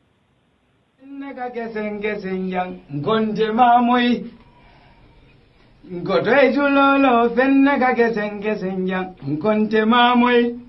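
A young man sings loudly into a microphone.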